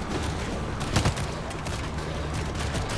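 A chainsaw revs and roars.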